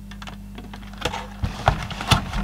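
A plastic casing knocks and clatters as it is handled.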